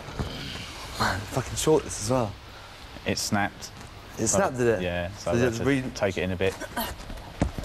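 A man talks casually close to a microphone.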